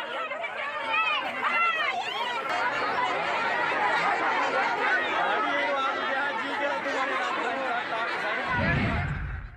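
A crowd of women shouts and clamours close by.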